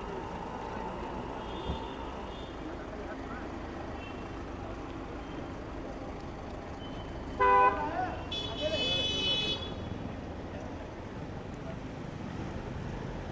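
A car engine hums steadily nearby.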